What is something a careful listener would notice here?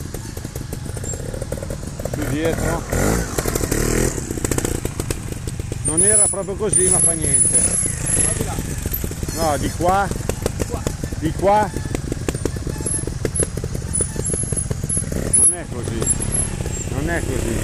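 A motorbike engine revs hard in short bursts close by.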